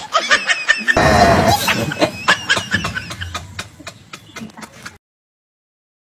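A man laughs loudly and wildly.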